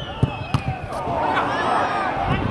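A crowd of spectators murmurs and calls out outdoors.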